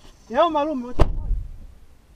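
A car door slams shut nearby.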